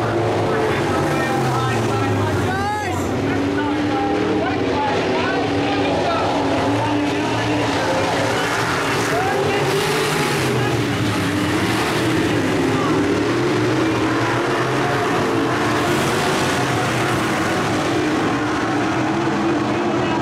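Race car engines roar loudly as the cars speed around the track.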